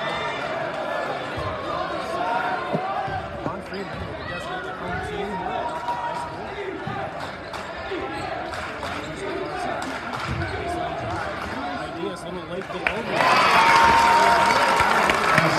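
A crowd chatters and murmurs in a large echoing gym.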